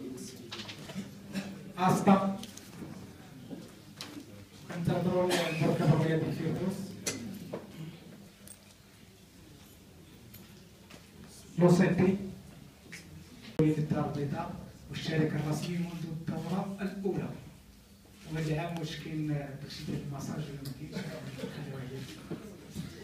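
A man speaks into a microphone, heard from across the room.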